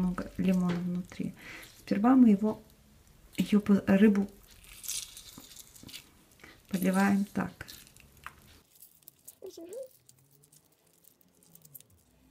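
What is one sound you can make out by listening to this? A lemon half is squeezed by hand, juice dripping onto fish.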